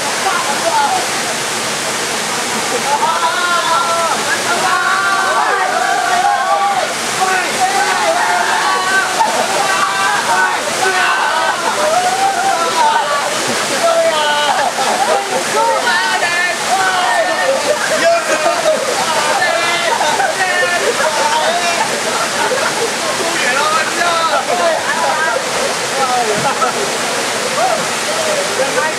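Young men shout and talk excitedly nearby.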